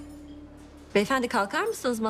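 A woman speaks softly and closely.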